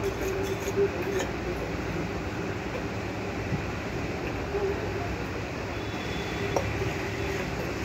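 A spoon scrapes and clinks against a small metal bowl.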